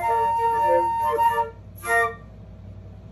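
A flute plays a short melody up close, then stops.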